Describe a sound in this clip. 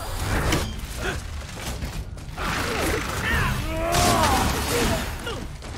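Heavy blows clang and thud in a fight.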